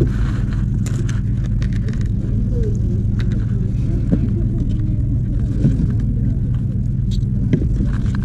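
A spoon scrapes and taps against a plastic bowl.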